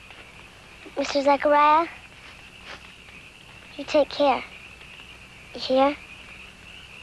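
A young girl speaks softly nearby.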